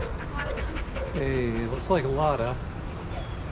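A dog whines nearby.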